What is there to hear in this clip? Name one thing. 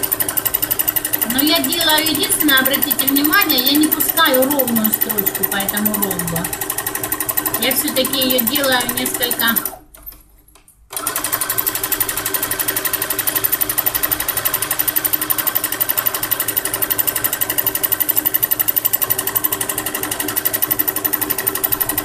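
A sewing machine stitches with a fast, steady rattle.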